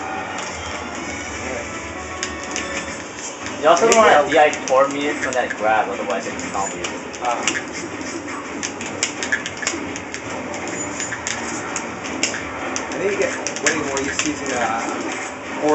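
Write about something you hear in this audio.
Sword slashes and hit sounds from a video game crackle through a television speaker.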